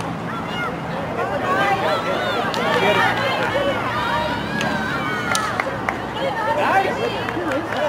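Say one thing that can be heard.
A hockey stick sharply strikes a ball.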